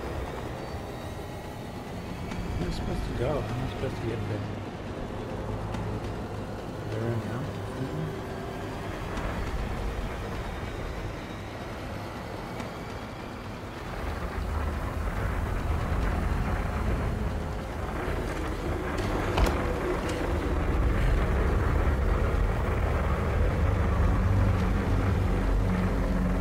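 Footsteps tread slowly across a floor.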